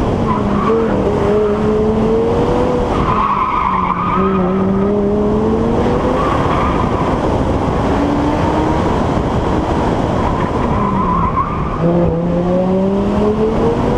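A car engine hums and revs, rising and falling in pitch as the car shifts gears.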